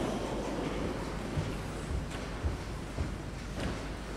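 Footsteps thud on a hard floor in a large echoing hall.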